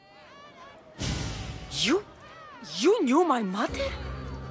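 A young woman asks a question in surprise.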